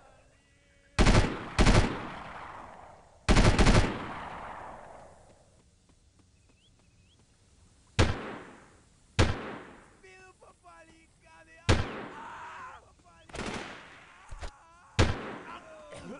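A rifle fires loud bursts that echo across open country.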